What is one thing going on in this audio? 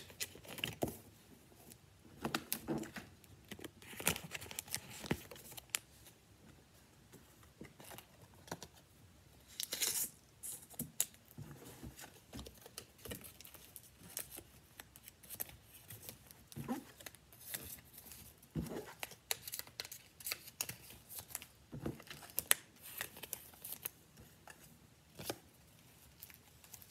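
Cards rustle and tap close by.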